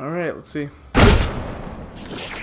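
A cannon fires with a deep boom.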